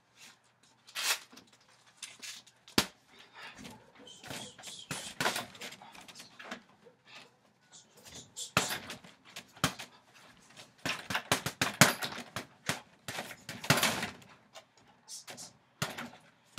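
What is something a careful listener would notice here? Punches thud against a heavy punching bag.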